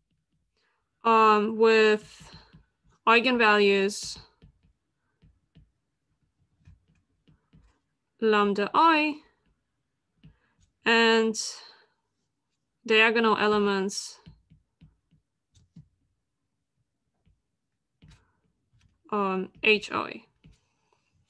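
A woman speaks calmly in short phrases over an online call.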